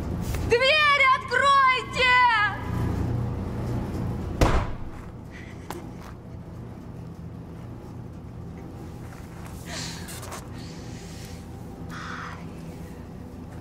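A woman wails and sobs loudly close by.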